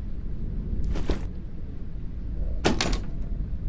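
A door handle rattles and clicks without opening.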